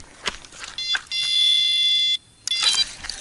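An electronic bite alarm beeps on a fishing rod.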